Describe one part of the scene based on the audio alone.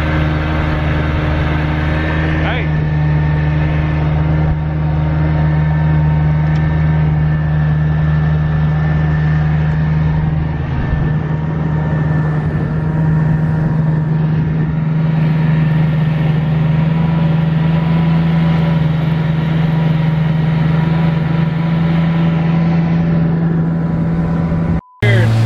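Water rushes past a moving boat.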